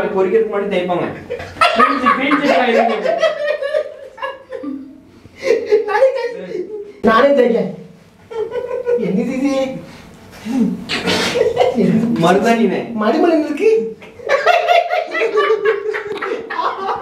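A man laughs loudly and talks with animation close by.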